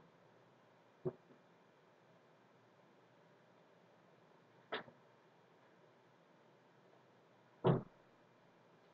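A short sound effect plays a few times, each burst brief and sudden.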